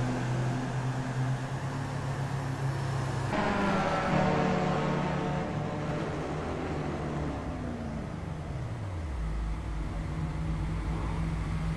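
Racing car engines roar and whine at high speed.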